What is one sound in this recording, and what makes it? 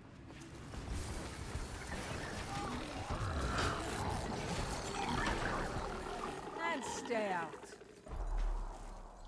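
Magic spells crackle and burst in a lively fight.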